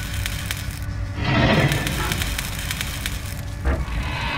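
A heavy metal door scrapes and grinds as it is pushed open.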